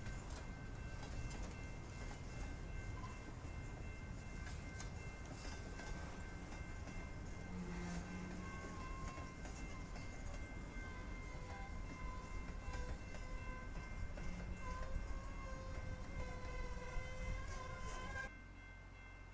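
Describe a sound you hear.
A freight train rumbles past at close range.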